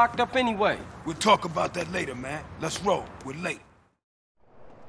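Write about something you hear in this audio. A man speaks casually, close by.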